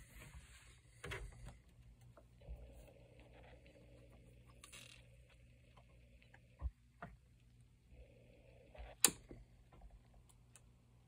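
Hands handle small hard objects with light knocks and clicks.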